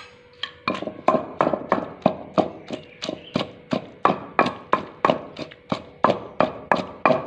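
A wooden pestle pounds wet food in a clay mortar with rapid, regular thuds.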